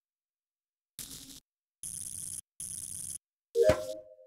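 Electric wires crackle and buzz in short bursts.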